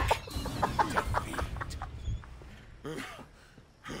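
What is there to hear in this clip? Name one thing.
A young man laughs loudly into a headset microphone.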